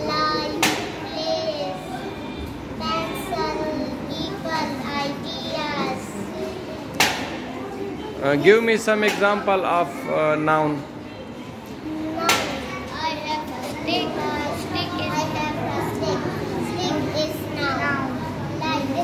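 A young girl speaks clearly and calmly, close by.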